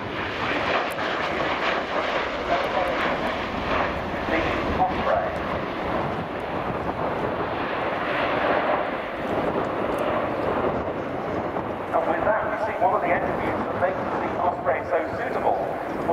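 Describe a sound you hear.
An aircraft's engines and rotors roar loudly overhead and slowly fade.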